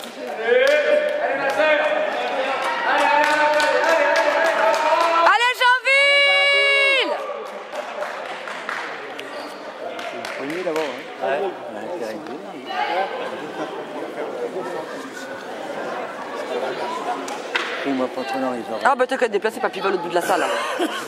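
Boys and men talk and call out in a large echoing hall.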